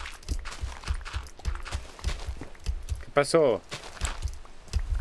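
Blocks crack and crumble in quick taps as they are dug away.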